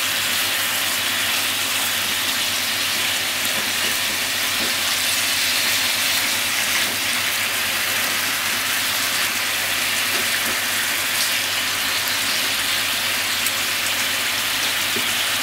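Chopsticks tap against a frying pan.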